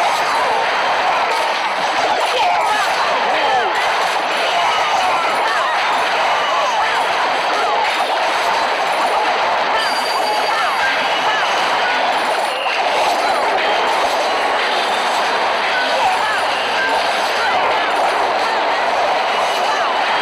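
Game battle sounds of explosions and clashing weapons ring out continuously.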